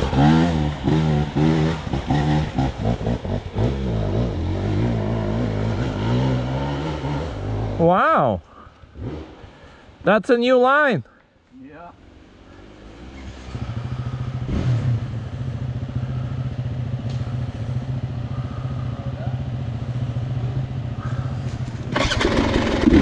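A dirt bike engine idles nearby with a low rumble.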